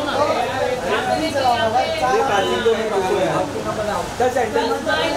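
Men and women chatter loudly close by.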